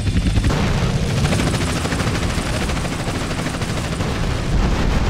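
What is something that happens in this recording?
A loud explosion booms and rumbles.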